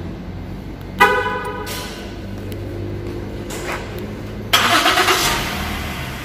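A car alarm chirps briefly.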